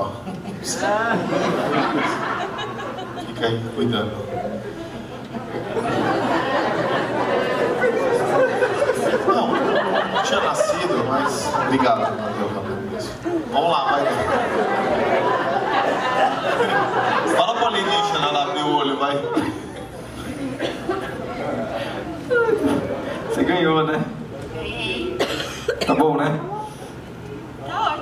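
A man talks with animation into a microphone, heard through loudspeakers in a large room.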